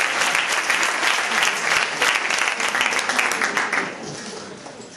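An audience applauds loudly in a large hall, then the applause dies away.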